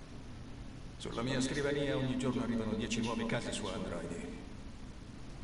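A deep-voiced man speaks calmly and firmly.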